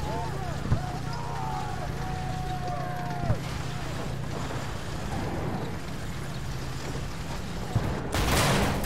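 A tank cannon fires with sharp bangs.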